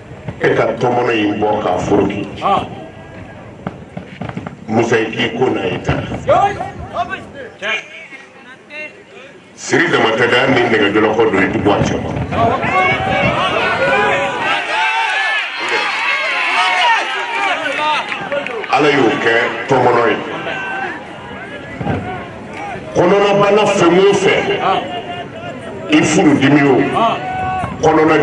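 A man preaches with passion through a microphone and loudspeakers.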